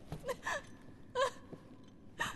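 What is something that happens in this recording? A young woman speaks tensely.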